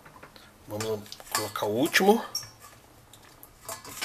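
A gloved hand lifts a soft tomato out of a metal bowl with a faint clink.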